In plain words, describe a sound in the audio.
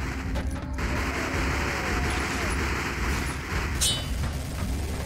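A pistol fires rapid shots.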